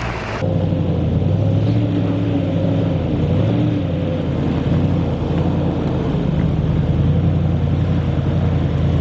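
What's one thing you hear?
A four-wheel-drive engine rumbles steadily as it climbs slowly closer.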